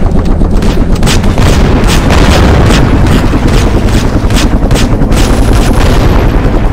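Rapid gunfire bursts out in quick shots.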